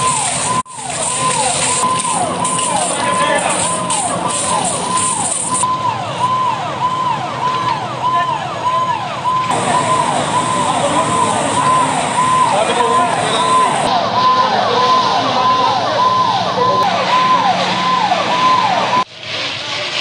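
A fire engine siren wails over and over.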